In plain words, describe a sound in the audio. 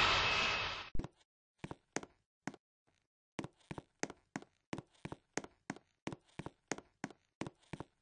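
Footsteps tap at an even pace on a hard floor.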